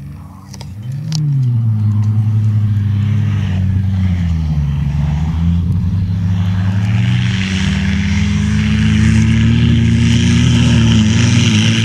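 A second off-road truck's engine roars loudly, rising and falling as it drives closer.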